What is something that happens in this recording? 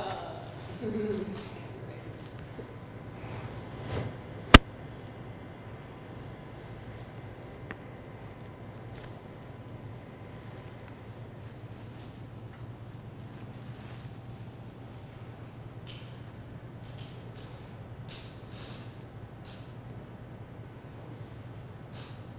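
A woman speaks calmly through a microphone in a large room.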